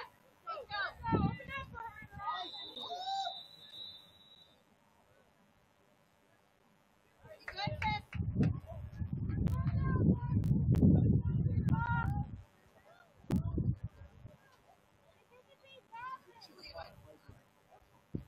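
Young women shout to each other across an open field, some distance away.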